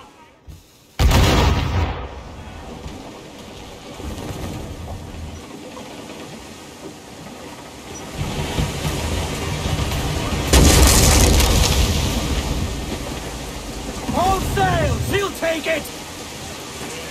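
Rough sea waves surge and crash against a ship.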